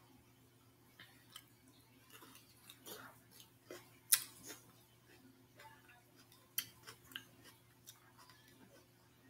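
Soft eating clicks and smacks sound close up.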